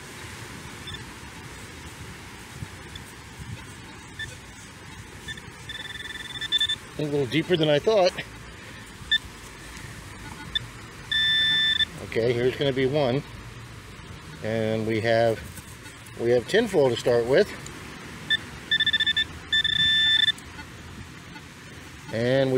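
A handheld metal detector beeps and warbles in short bursts.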